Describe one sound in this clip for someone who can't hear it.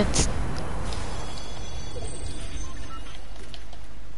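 A treasure chest opens with a shimmering, tinkling chime.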